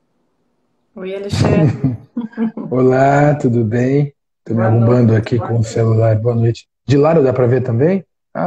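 A man talks and laughs over an online call.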